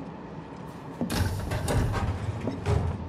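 A train carriage rumbles and rattles along.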